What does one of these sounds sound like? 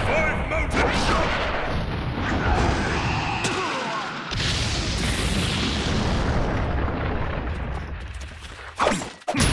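A whooshing blast of wind roars.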